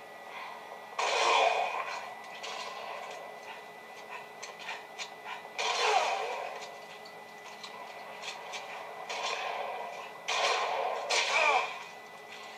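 Explosions from a video game boom loudly.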